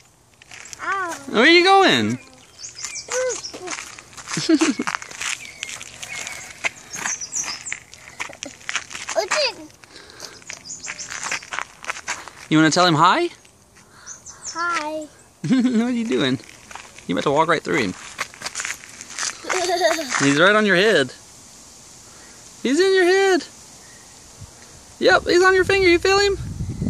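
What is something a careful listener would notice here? A young child talks and squeals nearby.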